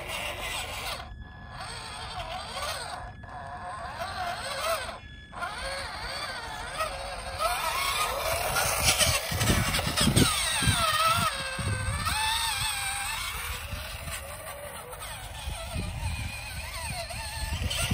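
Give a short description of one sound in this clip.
Rubber tyres crunch and bump over loose dirt.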